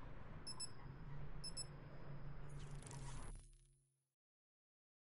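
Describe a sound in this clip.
Game menu music plays and then fades into silence.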